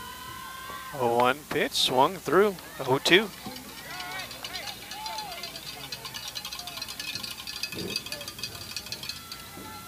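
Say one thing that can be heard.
Young women shout and cheer loudly across an open field.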